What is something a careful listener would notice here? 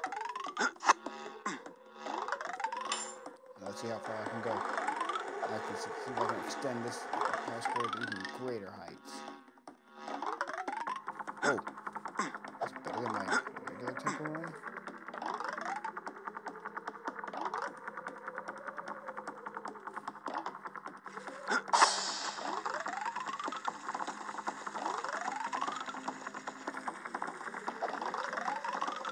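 Coin pickup chimes ring out in quick rising notes.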